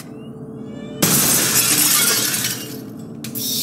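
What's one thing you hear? Glass shatters in a loud, sudden burst.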